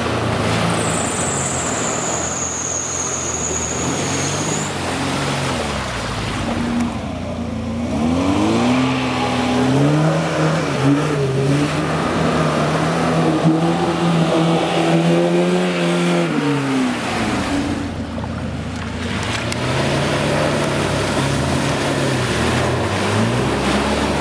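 Mud and water splash and slosh around spinning tyres.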